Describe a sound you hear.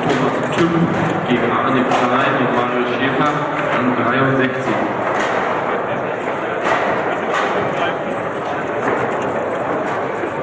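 Metal rods slide and knock as they are spun and pushed.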